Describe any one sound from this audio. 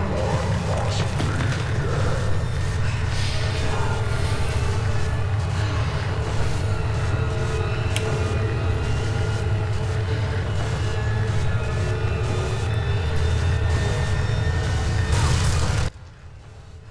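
Heavy rain hisses steadily.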